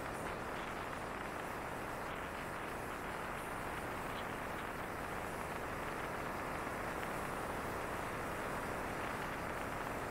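Wind rushes steadily past a moving scooter.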